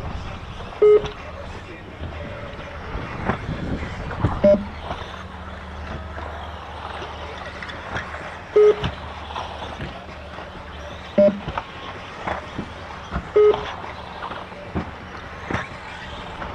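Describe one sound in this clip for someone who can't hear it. A small remote-control car whines as it races around a track.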